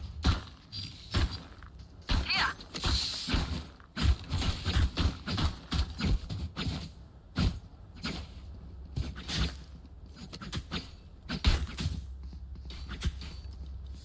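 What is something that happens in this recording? Footsteps crunch on sandy ground.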